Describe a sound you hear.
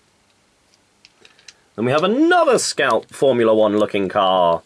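Plastic toy parts click and rattle as hands handle them.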